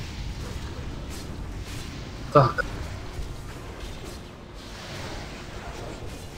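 Game spell effects crackle and burst.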